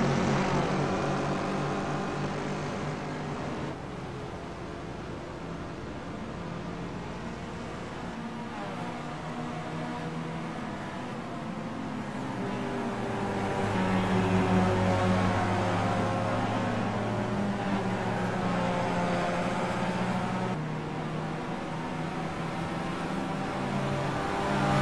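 Racing car engines roar and whine, rising in pitch and dropping at each gear change.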